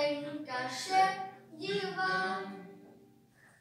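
A young girl calls out loudly in a high, sing-song voice in an echoing room.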